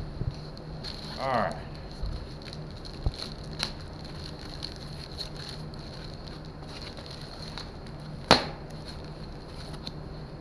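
Plastic wrapping rustles and crinkles as it is pulled off.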